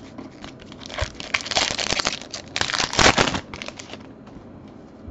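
A foil wrapper crinkles loudly as it is torn open.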